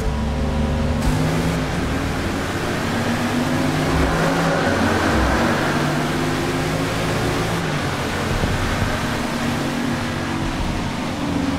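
Rain patters steadily on the cars.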